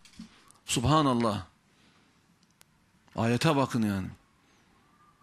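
A man speaks emphatically into a microphone, with pauses between phrases.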